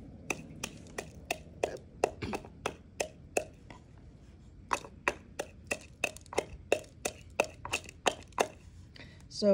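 Dry corn husks snap and crackle in quick bursts.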